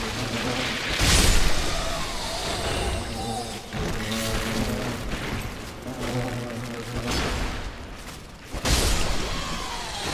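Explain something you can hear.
A sword whooshes through the air in heavy swings.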